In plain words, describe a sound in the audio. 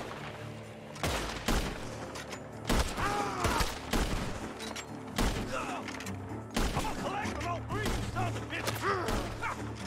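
A rifle fires shot after shot.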